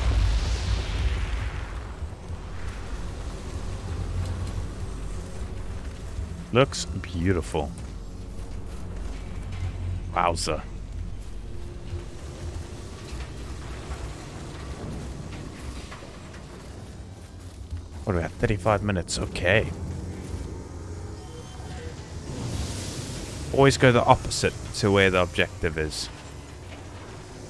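Footsteps rustle through grass and debris.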